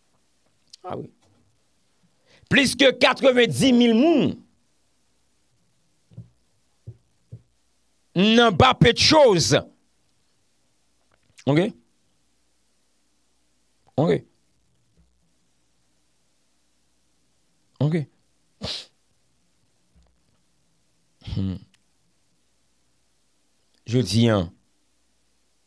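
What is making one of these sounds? A man speaks close into a microphone in short, halting bursts with long pauses.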